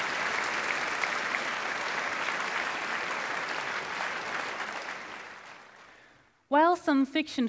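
An audience applauds in a large hall, and the applause fades away.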